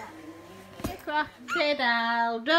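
A toddler babbles and squeals loudly close by.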